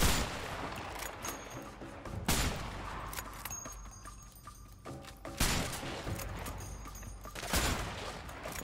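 Loud rifle shots boom one at a time, each followed by a rolling echo.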